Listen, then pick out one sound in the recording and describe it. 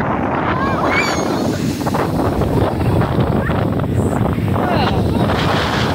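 Children squeal and shout excitedly close by.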